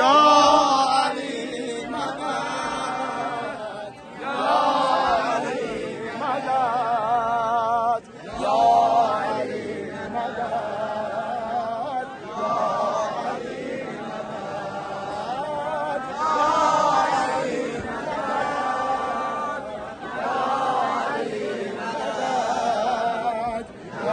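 Men sing loudly up close, leading a chant.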